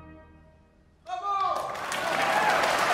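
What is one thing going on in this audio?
An orchestra plays a short rising burst of music.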